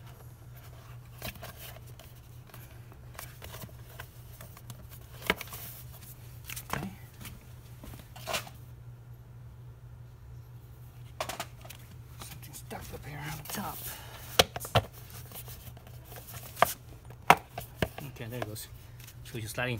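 Hard plastic parts knock and click as a cover is fitted and removed.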